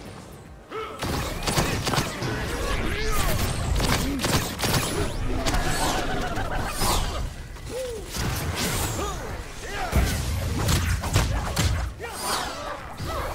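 Magic blasts crackle and whoosh in bursts.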